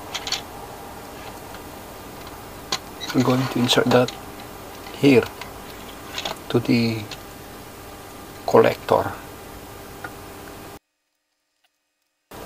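Small metal parts click faintly as fingers handle them.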